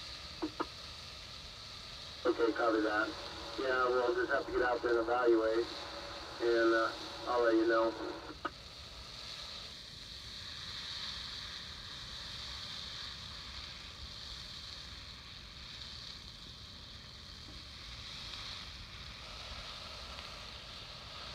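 A wildfire crackles and roars through trees.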